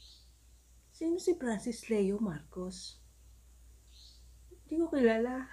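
A young woman speaks calmly, close to the microphone.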